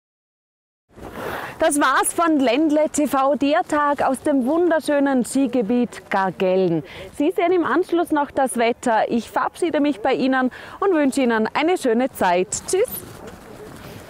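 A woman speaks calmly and clearly close to a microphone.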